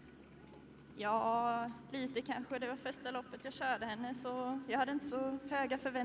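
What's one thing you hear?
A young woman answers into a microphone.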